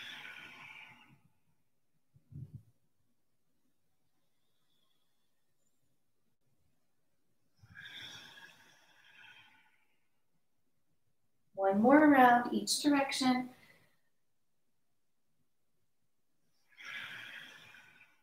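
A woman breathes out slowly and audibly.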